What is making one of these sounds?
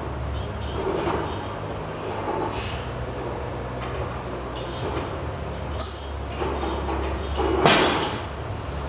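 Metal weight plates clank as a loaded bar is pushed up and lowered.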